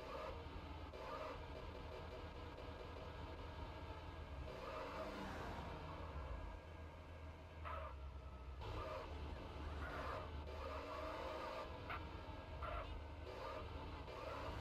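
A car engine hums steadily and revs as the car drives along a street.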